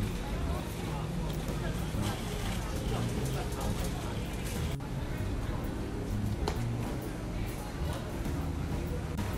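Shoppers murmur and chatter in a large, busy hall.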